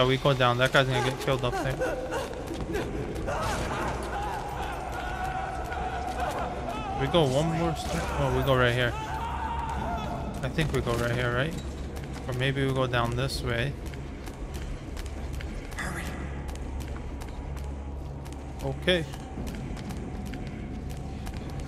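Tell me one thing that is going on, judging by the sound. Footsteps run quickly on hard stone floors and stairs.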